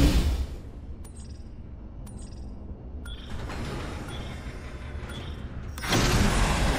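A countdown beep sounds once each second.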